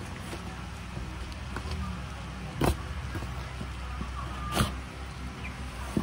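Scissors snip through tape on a cardboard box.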